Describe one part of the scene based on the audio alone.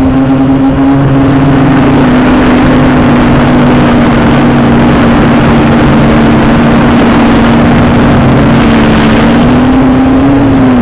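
Wind rushes loudly past throughout.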